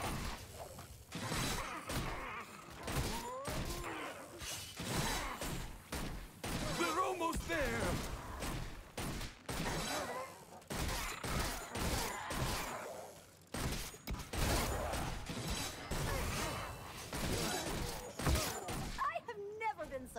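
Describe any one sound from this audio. Magic blasts zap and crackle in quick bursts.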